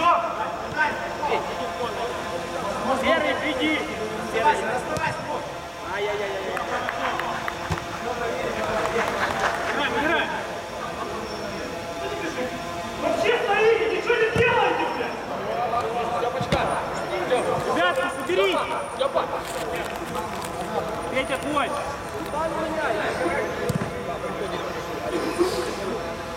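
Young men shout to each other in a large echoing dome.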